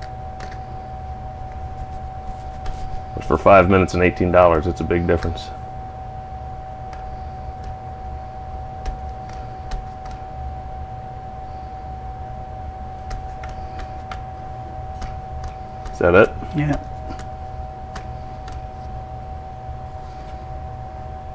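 Metal parts click and tap as they are handled.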